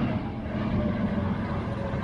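A truck's engine rumbles past.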